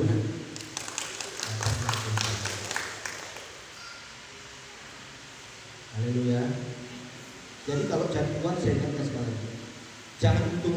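A man speaks calmly through a microphone and loudspeakers in a large echoing hall.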